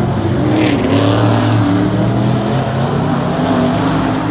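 A truck engine drones as the truck drives along.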